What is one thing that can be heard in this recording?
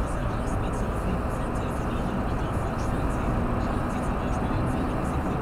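A car drives steadily along a road, with a low rumble of engine and tyres heard from inside.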